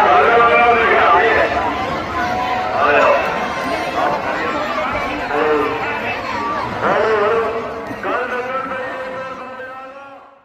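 Men shout excitedly close by.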